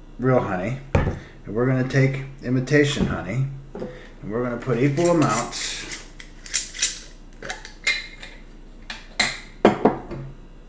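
Glass jars clink and knock on a table.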